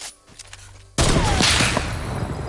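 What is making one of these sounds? A mounted turret fires rapid bursts.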